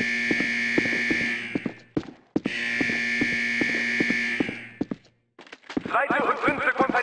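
Footsteps thud steadily on a hard floor in an echoing tunnel.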